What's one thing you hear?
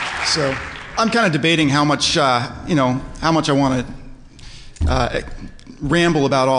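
A man speaks to an audience through a microphone in a large hall.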